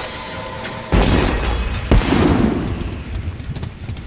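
A generator bangs with a burst of sparks.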